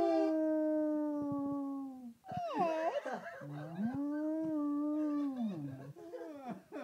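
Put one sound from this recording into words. A basset hound howls in long, drawn-out notes.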